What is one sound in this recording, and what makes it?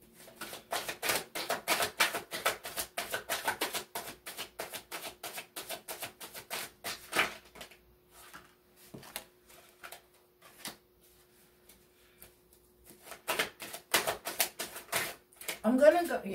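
Playing cards are shuffled with rapid crisp riffling.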